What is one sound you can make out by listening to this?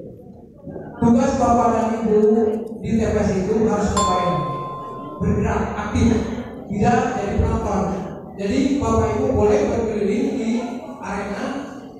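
A man speaks with animation through a microphone and loudspeakers in an echoing room.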